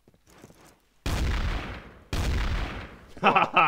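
A shotgun fires a few loud blasts.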